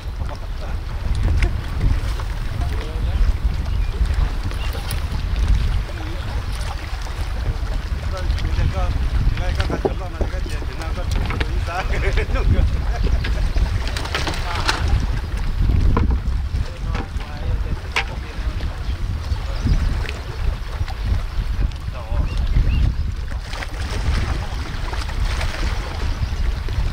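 Small waves lap against rocks.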